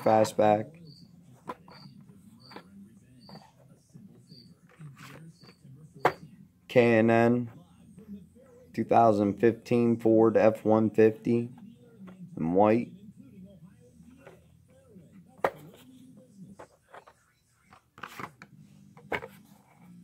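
A plastic toy package taps and rustles as it is handled.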